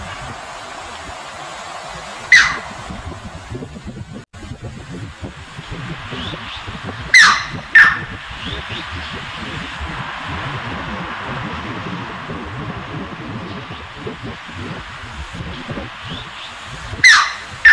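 Shallow water rushes steadily over a weir.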